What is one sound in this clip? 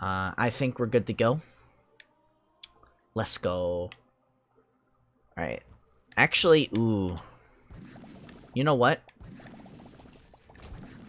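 Electronic game sound effects play in bursts.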